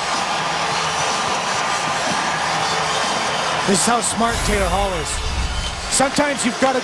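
A large crowd cheers and claps in an echoing arena.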